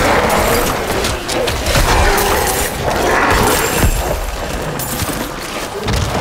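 Game combat sounds clash and crash continuously with rapid impacts.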